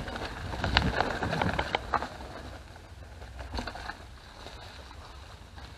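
Bicycle tyres crunch and roll over a dirt trail.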